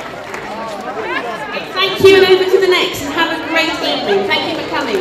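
A woman speaks into a microphone over loudspeakers.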